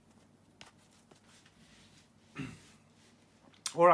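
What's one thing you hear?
Playing cards click softly as a deck is handled.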